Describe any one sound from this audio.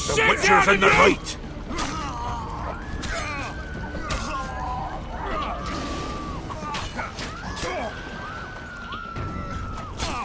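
Steel blades clash and clang repeatedly.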